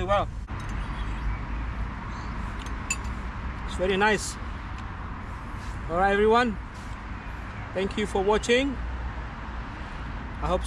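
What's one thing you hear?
A young man speaks calmly in short bursts close by.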